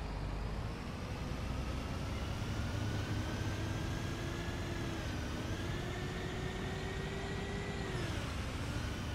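A bus engine hums steadily, its pitch rising and dropping as it speeds up and slows.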